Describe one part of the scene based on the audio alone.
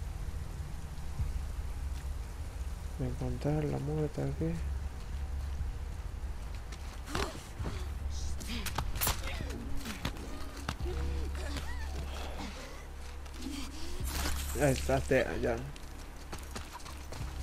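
Tall grass rustles as a person pushes through it.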